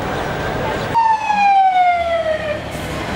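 A fire engine siren wails loudly as it passes close by, its pitch falling.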